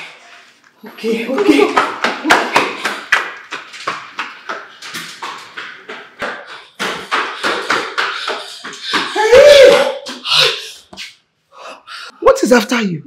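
A woman pleads loudly and frantically close by.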